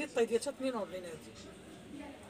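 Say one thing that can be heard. A woman speaks close by with animation.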